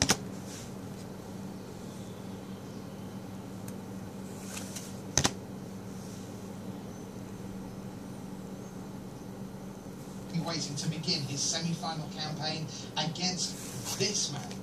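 Playing cards slide and flick against each other in a hand.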